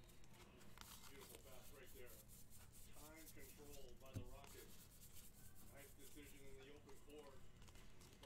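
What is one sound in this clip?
Trading cards flick and rustle as they are shuffled by hand.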